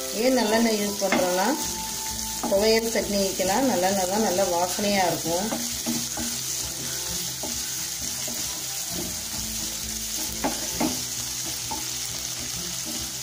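A spatula scrapes and clatters against a frying pan.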